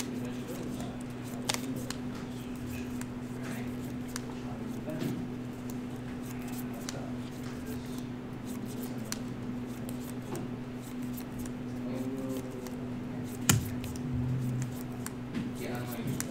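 Playing cards shuffle and riffle in hands.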